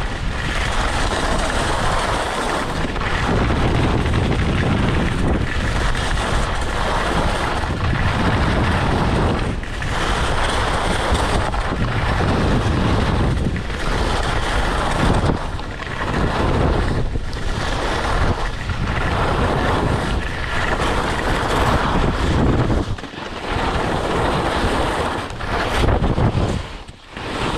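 Skis scrape and hiss over hard snow in a rhythm of turns.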